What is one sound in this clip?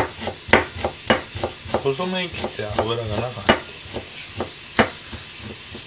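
A knife chops quickly on a cutting board.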